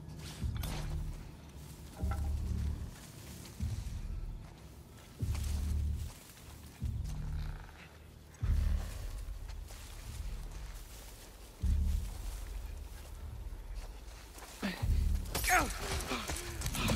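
Heavy footsteps thud softly on soft ground.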